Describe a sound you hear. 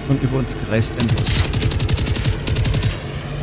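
An automatic rifle fires a rapid burst.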